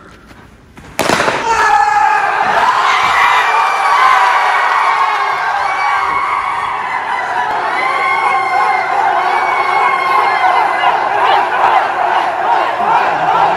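Young men cheer and shout excitedly.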